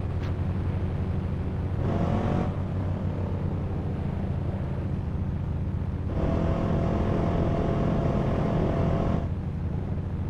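A motorcycle engine hums and revs.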